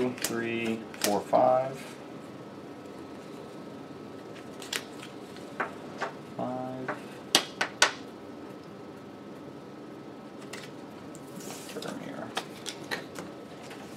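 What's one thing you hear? Cards slap and tap onto a table.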